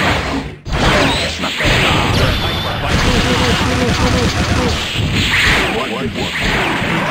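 Energetic game music plays.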